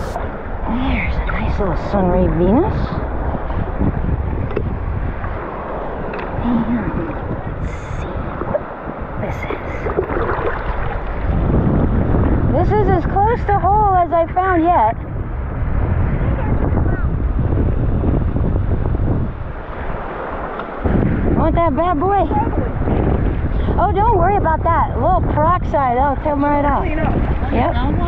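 Shallow water sloshes and splashes around wading legs.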